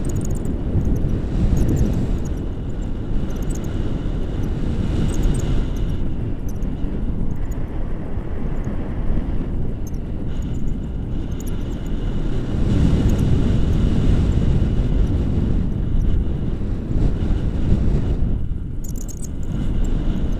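Wind roars steadily against a microphone outdoors.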